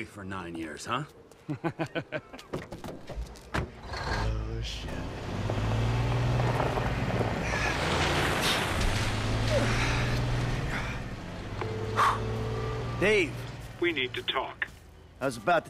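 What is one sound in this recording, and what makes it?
A man speaks angrily, close by.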